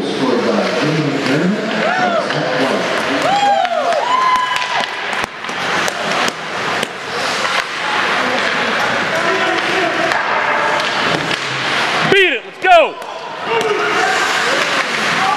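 Ice skates scrape and hiss across the ice.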